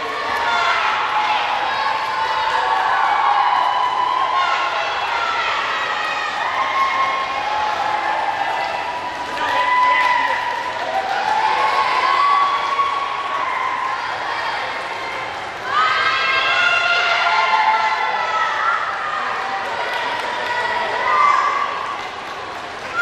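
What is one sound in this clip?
A crowd of young people cheers and shouts loudly in a large echoing hall.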